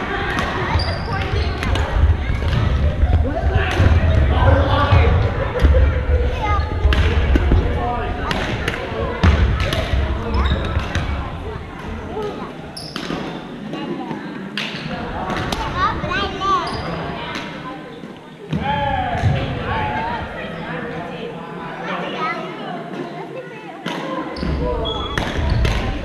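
Paddles strike balls with sharp hollow pops in a large echoing gym.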